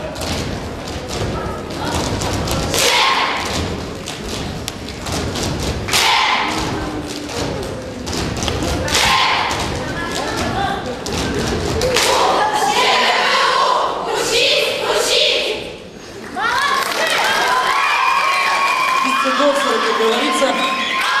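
Loud music plays through loudspeakers in a large hall.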